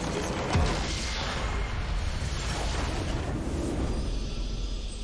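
A crystal structure shatters with a loud magical explosion.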